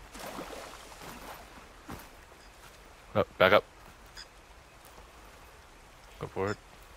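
Water flows and babbles in a shallow stream.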